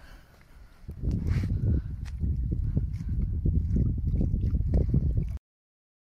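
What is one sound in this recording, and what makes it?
A fish splashes and flaps in shallow water.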